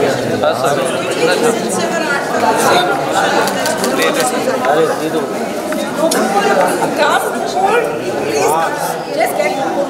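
A crowd of adults chatters close by in a busy room.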